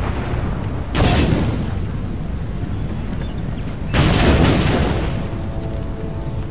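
Muskets fire in loud crackling volleys.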